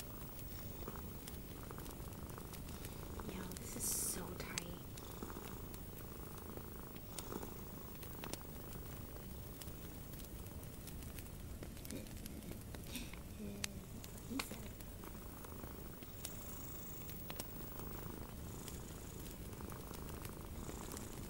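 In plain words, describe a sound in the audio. Fingernails scratch and rub softly close up.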